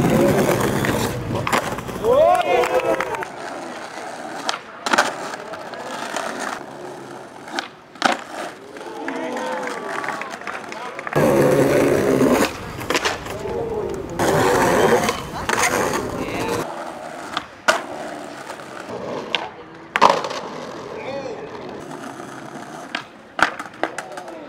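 A skateboard snaps and clatters as it lands on hard ground.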